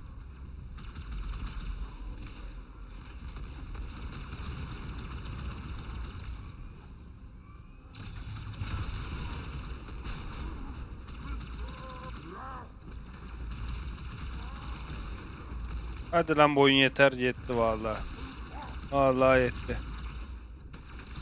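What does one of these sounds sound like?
Energy weapons fire in quick bursts.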